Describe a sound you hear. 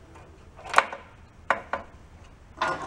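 Metal tools click and tap against engine parts.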